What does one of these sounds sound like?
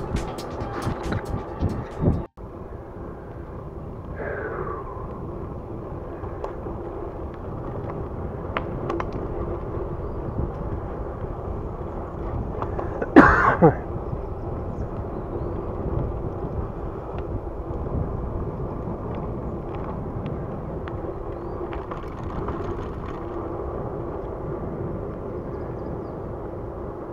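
Bicycle tyres roll steadily over pavement.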